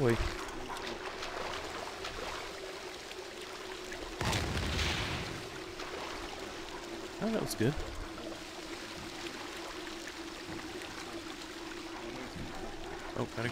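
Water flows and rushes steadily along a channel.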